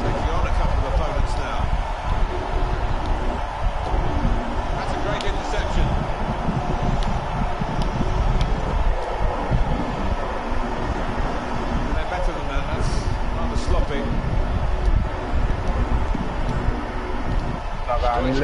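A large crowd cheers and murmurs steadily in a stadium.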